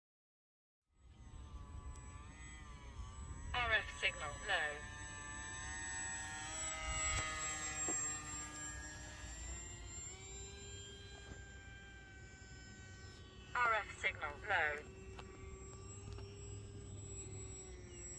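A small model plane's engine whines overhead, rising and falling in pitch as it flies past.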